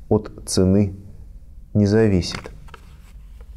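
A man speaks calmly and slowly, close to a microphone.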